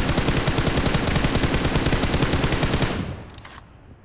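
Rapid gunfire rattles in a fast, steady burst.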